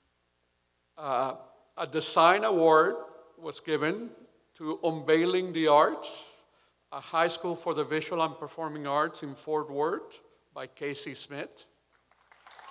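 A man speaks calmly into a microphone through loudspeakers.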